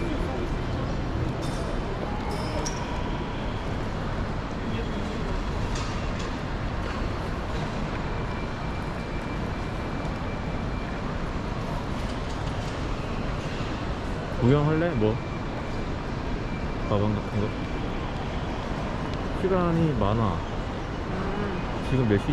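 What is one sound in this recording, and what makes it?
A crowd murmurs steadily in a large echoing hall.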